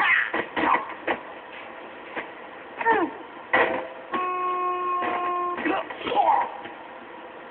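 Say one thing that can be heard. A van hits a person with loud thuds.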